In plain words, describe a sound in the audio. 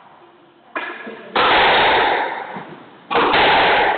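A squash ball smacks sharply against the walls in an echoing court.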